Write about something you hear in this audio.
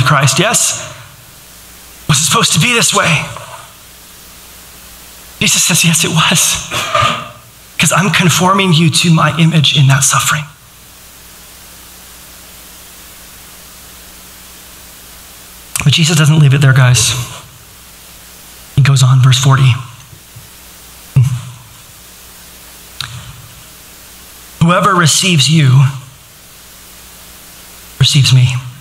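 A man speaks calmly through a microphone in a large room, pausing often.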